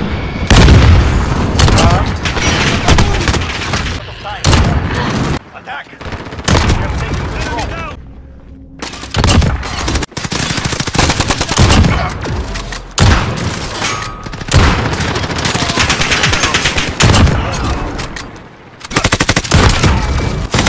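Rifle shots crack sharply, again and again.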